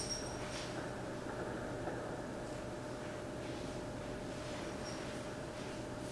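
An elderly man reads aloud calmly through a microphone in an echoing hall.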